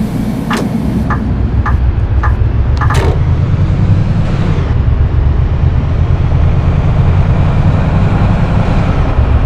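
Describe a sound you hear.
A bus engine grows louder as the bus pulls away.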